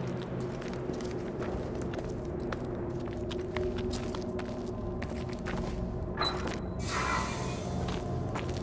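Footsteps crunch on loose rubble.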